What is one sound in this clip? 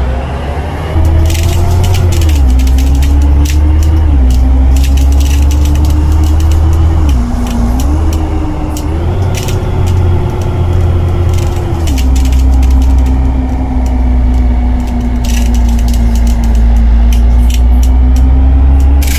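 A bus engine hums loudly, its pitch rising and dropping as it shifts gears.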